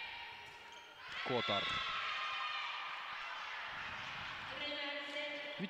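A crowd of spectators cheers in a large echoing hall.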